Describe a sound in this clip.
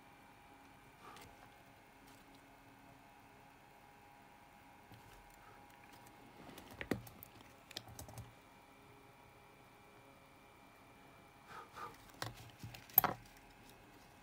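A circuit board clicks and knocks as it is handled.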